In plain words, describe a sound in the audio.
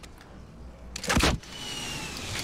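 A gun fires a single loud, booming shot.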